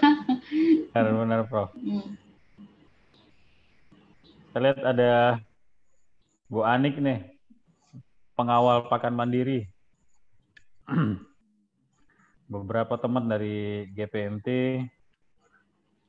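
A man speaks in bursts over an online call.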